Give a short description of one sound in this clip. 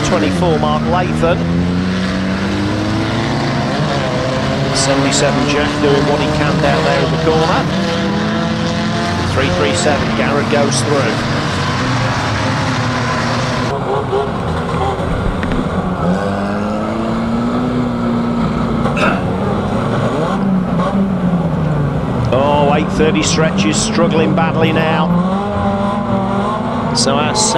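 Van engines roar and rev loudly.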